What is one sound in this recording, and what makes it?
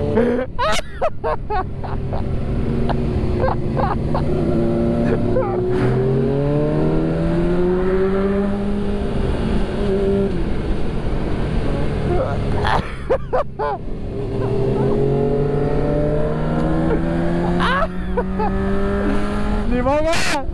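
A motorcycle engine roars close by, its pitch rising and falling as it shifts gears.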